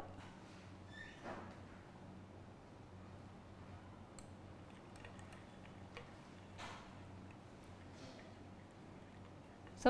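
A spoon clinks against a glass.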